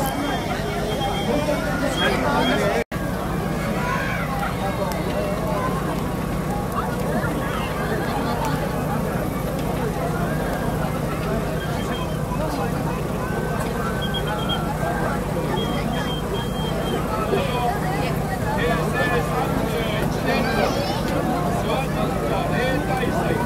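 A large crowd chatters and calls out all around outdoors.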